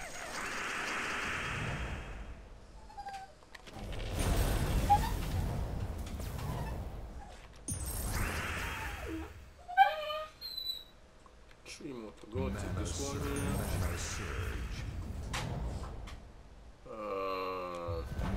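Magical chimes and bursts sound as coloured gems are matched and cleared.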